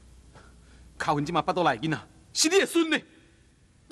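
A second man speaks with agitation, close by.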